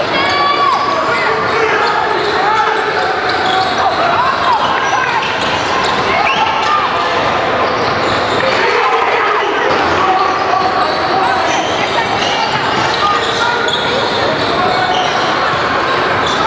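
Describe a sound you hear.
Players shout to each other in a large echoing gym.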